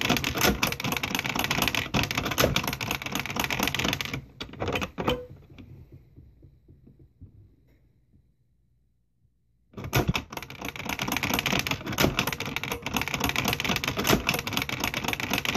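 A toy computer plays tinny electronic sounds through a small speaker.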